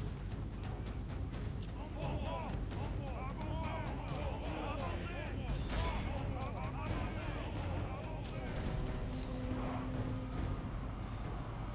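A large body of troops tramps steadily across open ground, with a low rumble.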